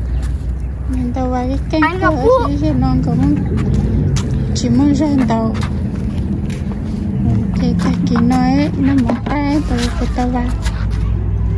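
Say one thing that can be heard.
A young boy talks nearby in a high voice.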